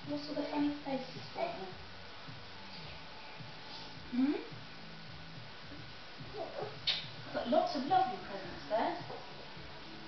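A woman speaks warmly nearby.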